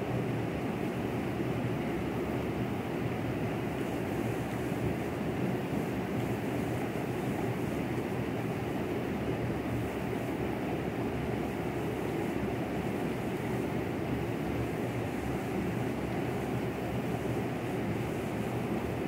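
Wind blows steadily across an open space.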